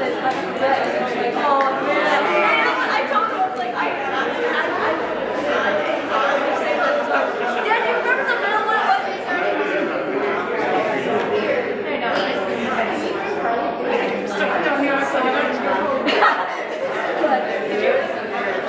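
A room full of people chatter at once in an echoing hall.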